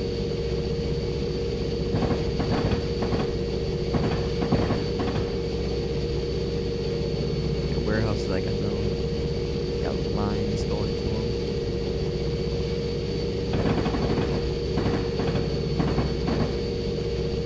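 A locomotive engine hums steadily.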